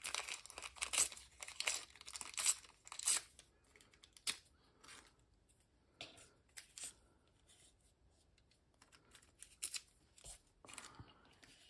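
Paper tape crinkles and tears softly between fingers.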